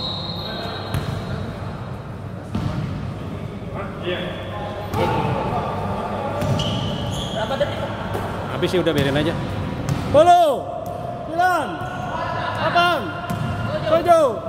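A basketball bounces with hollow thuds.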